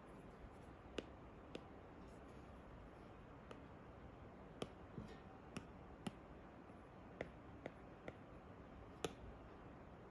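A stylus taps lightly on a tablet's glass.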